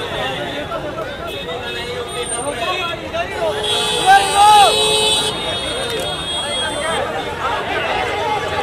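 A crowd of people chatter and cheer loudly outdoors.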